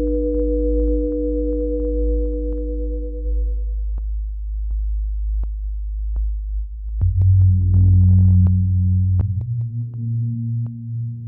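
Electronic synthesizer tones drone and pulse with clicking beats.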